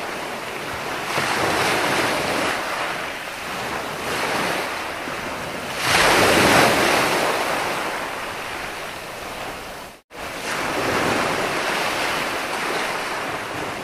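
Foamy water hisses as it runs up the sand.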